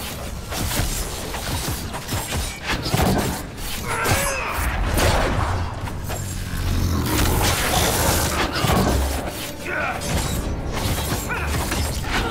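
Blades clash and strike repeatedly.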